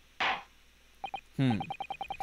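Short electronic blips tick rapidly in a steady run.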